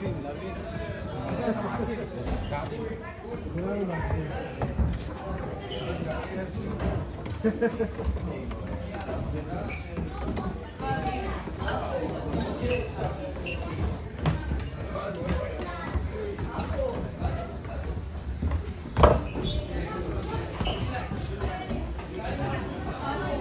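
A crowd of people murmurs and chatters nearby, echoing off stone walls.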